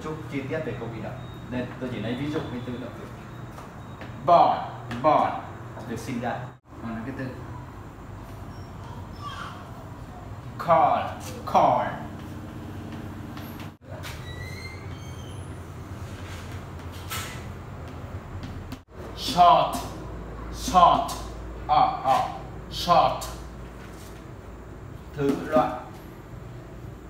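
An adult man speaks with animation.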